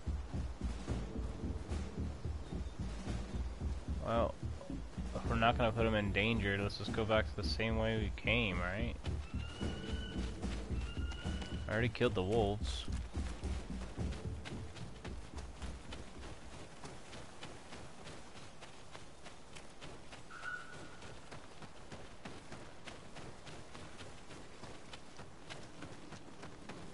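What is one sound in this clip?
Quick footsteps run over soft ground.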